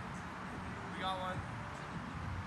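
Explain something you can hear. A young man calls out nearby outdoors.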